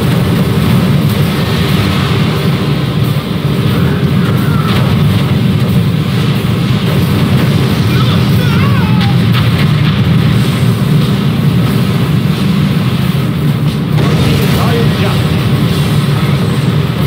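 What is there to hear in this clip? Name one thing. Explosions boom one after another.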